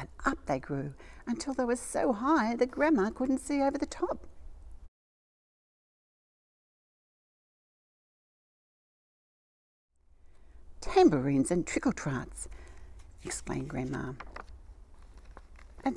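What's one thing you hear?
An older woman reads a story aloud with lively expression, close by.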